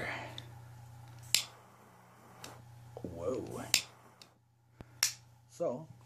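A small metal lid clicks open and shut.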